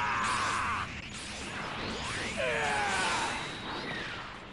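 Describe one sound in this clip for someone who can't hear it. An energy blast crackles and whooshes loudly.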